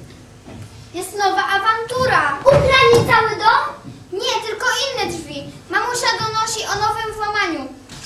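A child speaks loudly and with animation in an echoing room.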